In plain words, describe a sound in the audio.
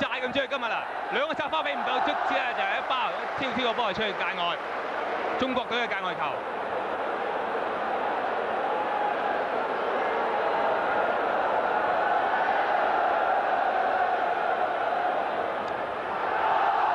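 A crowd murmurs and cheers in a large open stadium.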